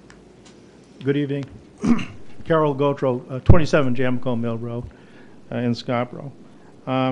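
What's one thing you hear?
An elderly man speaks into a microphone in a large room.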